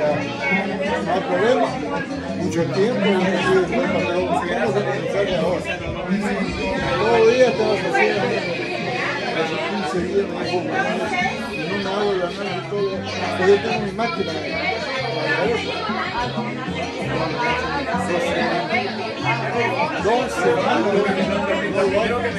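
Several adults chat and laugh nearby.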